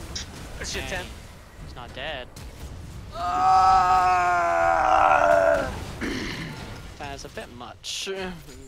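Magic blasts and weapon hits crackle during a fast battle.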